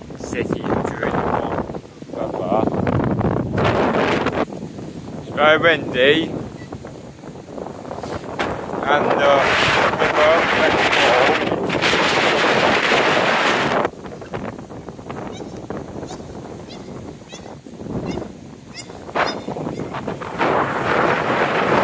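Strong wind gusts and buffets outdoors.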